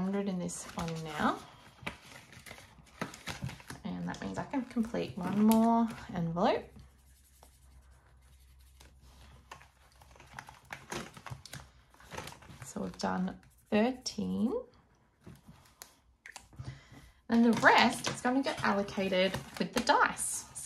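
Paper pages rustle and flip as they turn.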